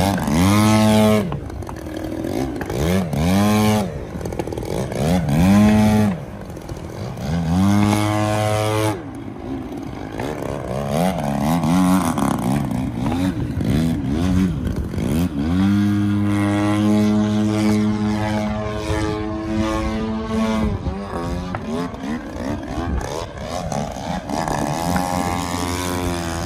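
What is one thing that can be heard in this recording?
A model airplane engine buzzes loudly, revving up and down as the plane swoops past.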